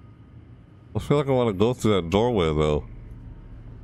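A young man speaks loudly and with animation, close to a microphone.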